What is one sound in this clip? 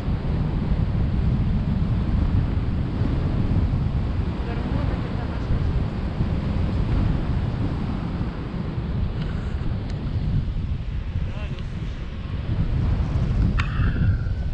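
Strong wind roars and buffets against a microphone outdoors.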